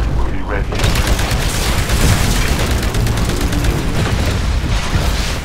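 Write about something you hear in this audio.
A carbine fires rapid automatic bursts.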